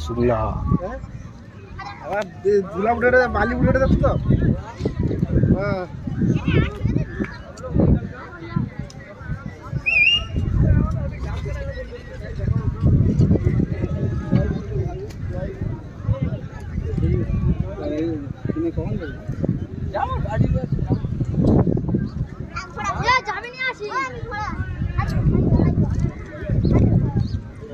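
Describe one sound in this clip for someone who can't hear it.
A crowd of people chatters and calls outdoors nearby.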